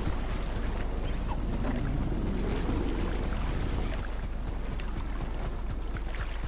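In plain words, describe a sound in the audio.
A boat engine rumbles and idles.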